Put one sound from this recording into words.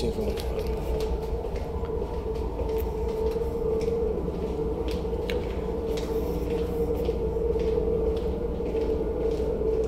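Footsteps walk along a corridor.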